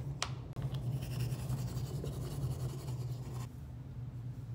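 A toothbrush scrubs rapidly against teeth.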